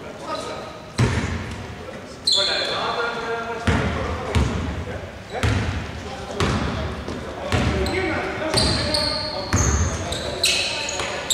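A basketball bounces with echoing thumps.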